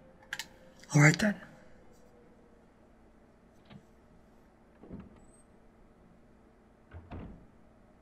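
A heavy wooden door creaks slowly open.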